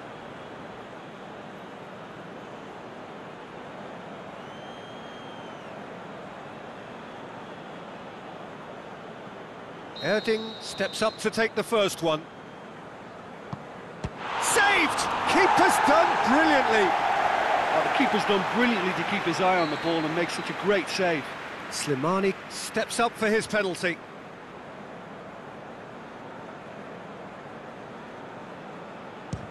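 A stadium crowd murmurs steadily in the distance.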